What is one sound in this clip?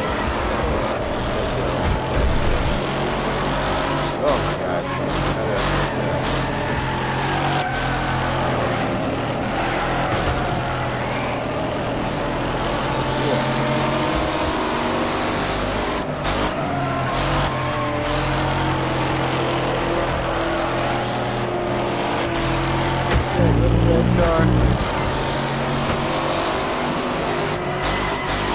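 A car engine roars steadily, changing pitch as it shifts and revs.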